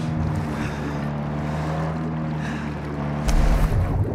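Water sloshes and splashes at the surface close by.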